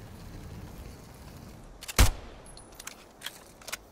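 A bow fires an arrow with a sharp snap.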